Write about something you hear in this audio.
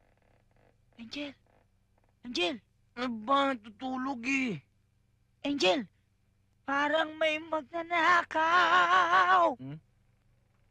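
A young woman speaks close by with animation, at times in a sing-song, whining tone.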